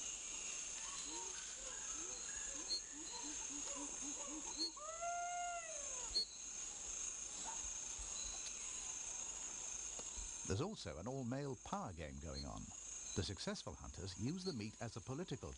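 Chimpanzees hoot and scream in the trees nearby.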